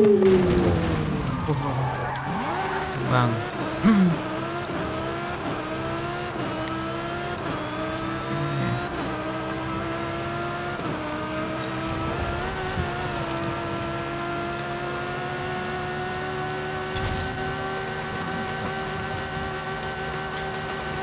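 A racing car engine roars and climbs through the gears, rising in pitch with each shift.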